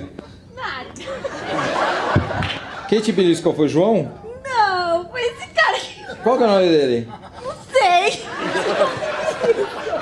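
A woman speaks into a microphone, laughing at times.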